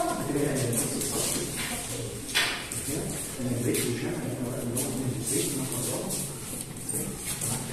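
Children chatter and call out.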